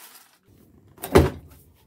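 A cardboard box thumps down on a table.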